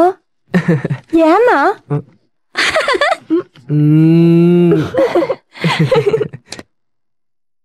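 Young women talk and laugh with animation close by.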